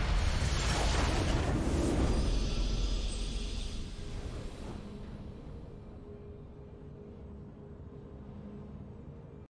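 A triumphant victory fanfare swells and slowly fades.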